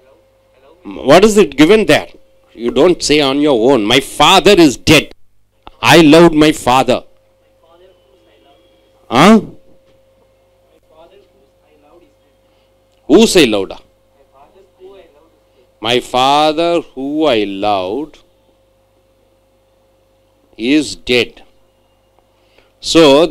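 A middle-aged man speaks with animation into a microphone, in pauses.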